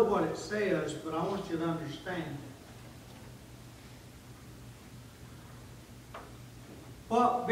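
A middle-aged man speaks with emphasis, his voice echoing slightly in a large room.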